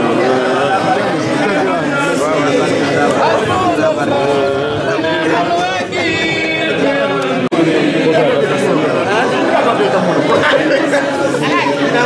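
A crowd of men and women talk and call out all at once.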